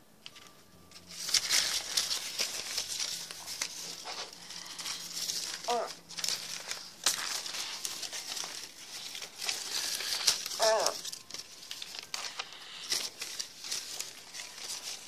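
Fur rustles and brushes against the microphone.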